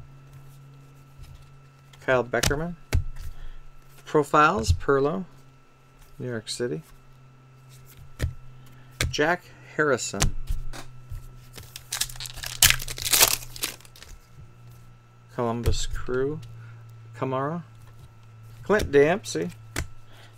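Trading cards rustle and slide against each other as they are flipped through.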